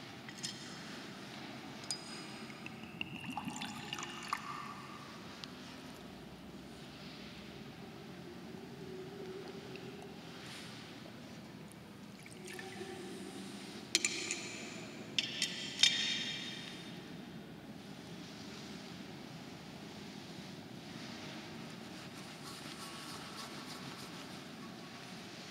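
A man speaks quietly and calmly.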